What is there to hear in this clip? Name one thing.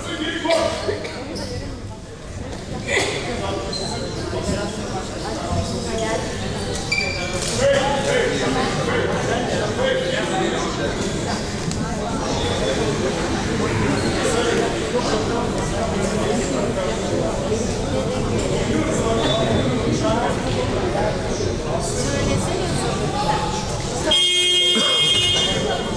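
Two men talk calmly with each other in a large echoing hall.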